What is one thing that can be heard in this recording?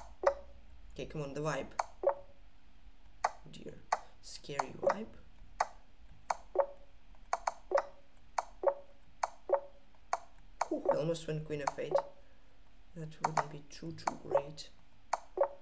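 A young man speaks briefly and quietly, close to a microphone.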